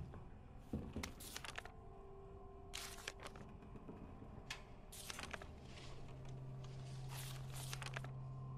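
Paper pages rustle as they are picked up and flipped.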